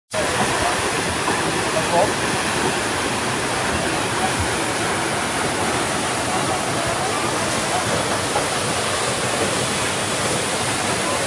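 A tall waterfall roars steadily as water crashes into a pool.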